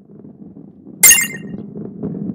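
A chime rings as a key is picked up.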